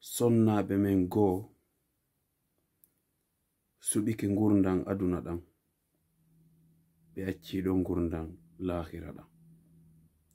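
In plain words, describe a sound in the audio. A man speaks calmly and earnestly close to a microphone, with pauses.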